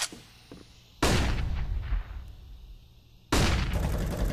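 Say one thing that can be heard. A stun grenade bursts with a loud bang and a high ringing.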